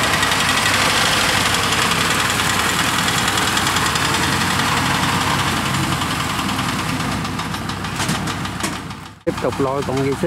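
A tracked farm vehicle's engine rumbles steadily.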